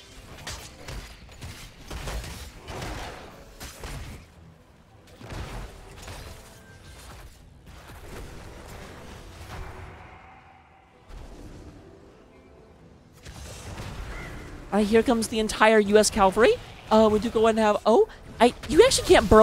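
Game spells crackle and burst during a fight.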